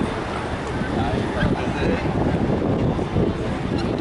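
Adults talk nearby in a crowd.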